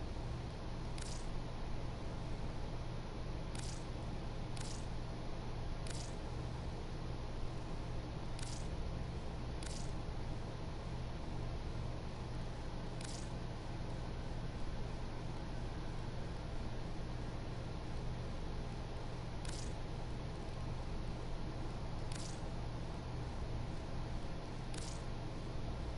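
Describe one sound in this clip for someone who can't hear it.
Short sharp clicks sound as menu items are selected.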